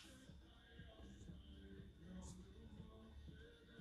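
Paper rustles softly under sliding hands.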